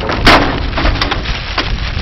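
Loose papers flutter and scatter in a gust of wind.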